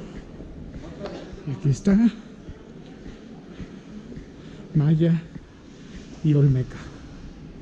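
A man speaks a few short words nearby.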